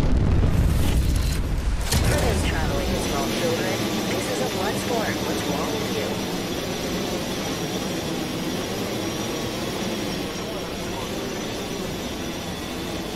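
Wind rushes loudly past during a fast glide through the air.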